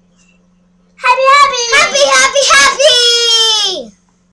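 A young girl speaks excitedly close by.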